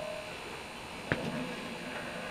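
A sliding door opens with a knock.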